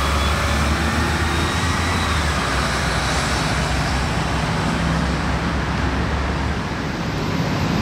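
A bus engine rumbles as a bus drives away.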